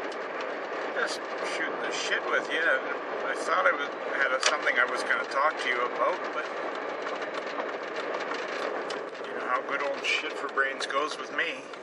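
An elderly man talks close by, calmly.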